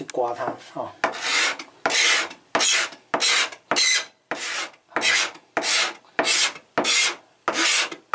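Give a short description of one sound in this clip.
Hands rub back and forth across a plastic board in steady, rhythmic strokes.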